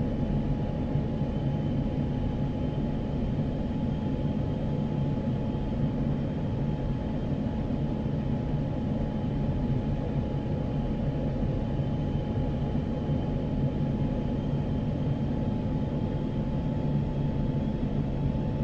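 A jet engine roars steadily with a steady whine.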